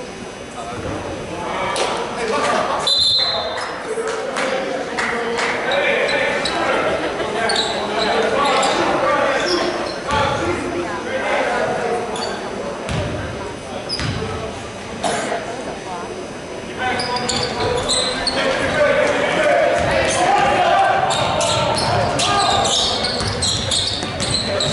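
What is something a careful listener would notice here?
Spectators chatter and murmur throughout.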